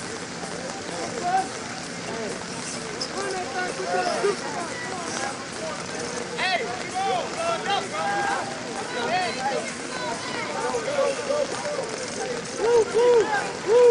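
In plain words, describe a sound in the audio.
Men shout and call out across an open outdoor field.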